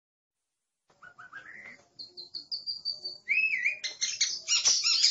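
A bird sings loud whistling, warbling notes close by.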